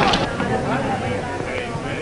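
A man shouts forcefully.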